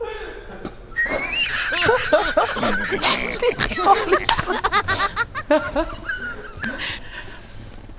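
A woman laughs loudly and excitedly nearby.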